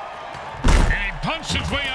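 Players collide with a heavy thud.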